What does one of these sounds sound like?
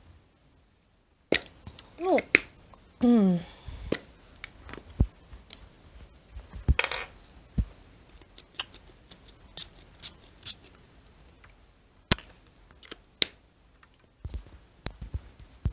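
A glass bottle knocks softly as it is set down on paper.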